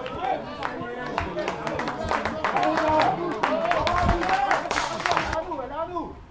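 Spectators clap and cheer from a distance.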